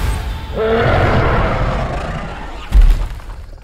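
A large creature roars loudly and deeply, then the roar fades.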